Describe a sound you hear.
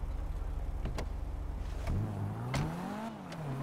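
Car doors thump shut.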